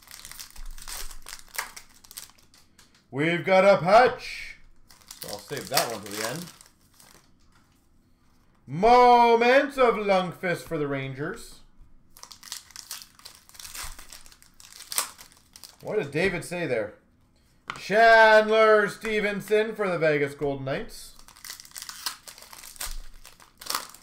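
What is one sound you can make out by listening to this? Small cardboard packs rustle and tap as they are handled and sorted.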